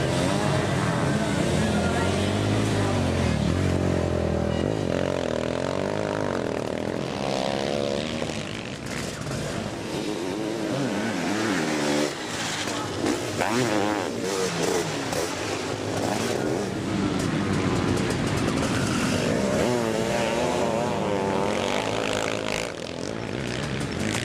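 Motorcycle engines roar and rev up and down loudly.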